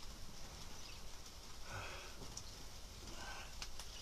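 Fabric rustles as a cloth is moved across a mat.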